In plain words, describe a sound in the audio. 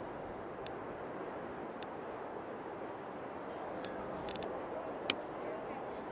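Short, sharp game menu clicks sound several times.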